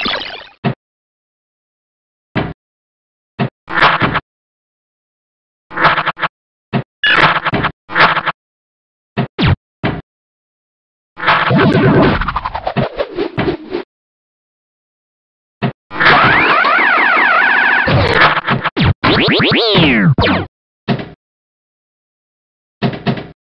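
A pinball game's electronic bumper sounds, beeps and chimes ring out in short bursts as the ball scores.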